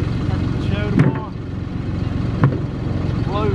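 An axe strikes and splits wood with sharp cracks.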